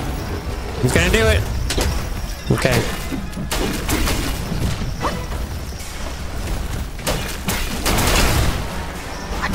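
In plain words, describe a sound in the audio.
A sword clashes against metal with sharp ringing strikes.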